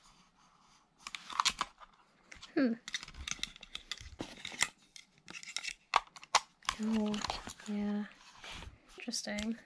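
Plastic parts click and snap as a computer mouse is handled.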